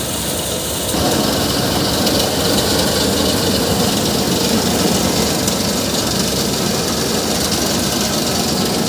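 Grain pours and hisses into a metal basin.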